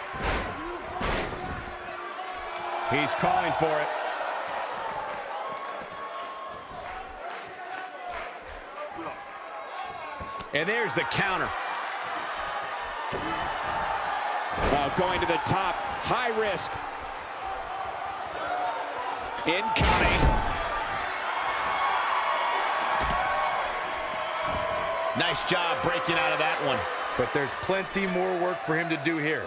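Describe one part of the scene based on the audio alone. A crowd cheers and roars throughout.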